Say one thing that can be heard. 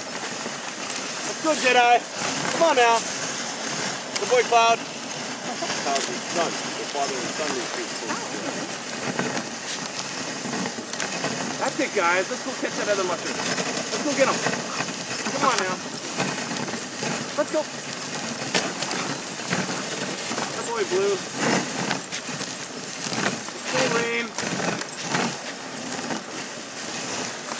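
Sled runners hiss steadily over snow.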